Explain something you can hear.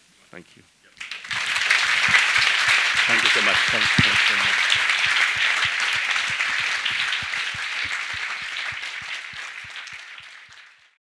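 An audience applauds loudly, then the applause slowly fades.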